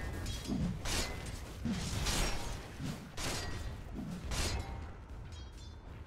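Weapons clash and strike in quick hits.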